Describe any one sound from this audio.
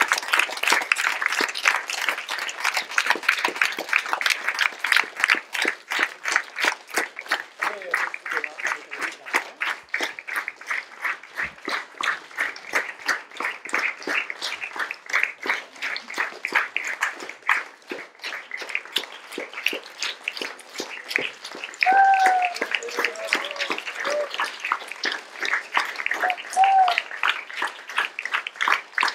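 A large audience applauds steadily in a reverberant hall.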